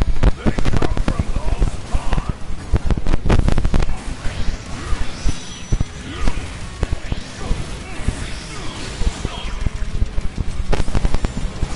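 Energy weapons blast and crackle rapidly.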